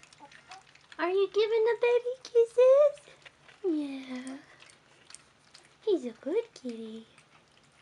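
Puppies whine and squeal close by.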